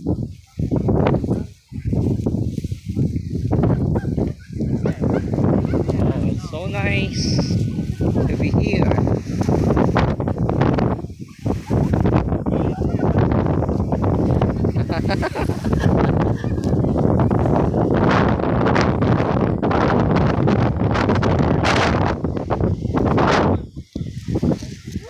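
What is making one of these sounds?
Strong wind roars and buffets outdoors.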